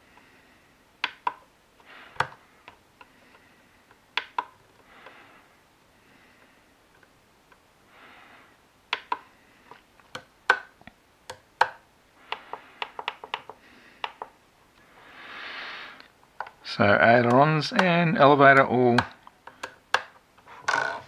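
Buttons click sharply on a handheld radio controller.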